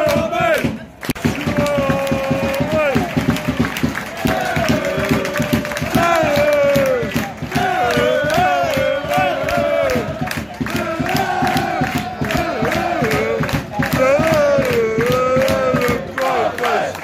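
A stadium crowd sings and chants together.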